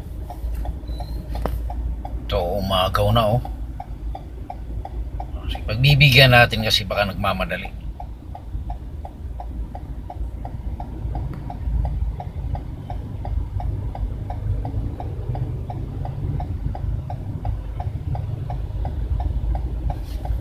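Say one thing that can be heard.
A car engine idles with a low, steady rumble from inside the car.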